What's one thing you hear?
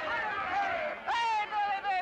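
A young man shouts loudly.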